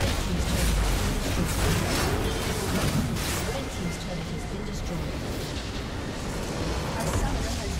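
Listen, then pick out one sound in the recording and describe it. A tower crumbles with a heavy crash.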